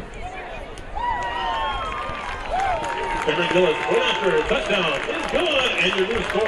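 A crowd cheers loudly after the play.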